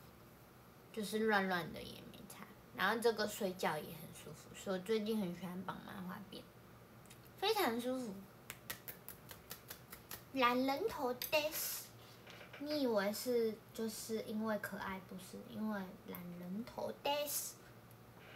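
A young woman talks animatedly and close by.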